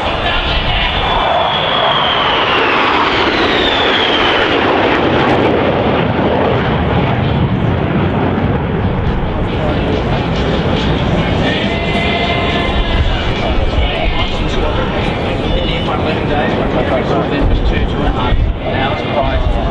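Jet engines roar loudly overhead, with a falling whine as the planes pass.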